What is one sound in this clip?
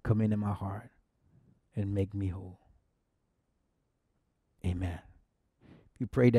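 A middle-aged man speaks calmly and slowly, close to a microphone, with pauses between phrases.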